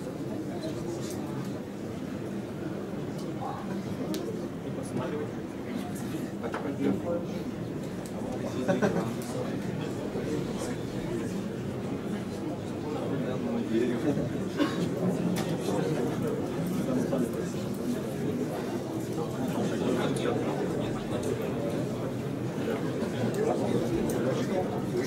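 A young man talks into a microphone, heard over loudspeakers in a large echoing room.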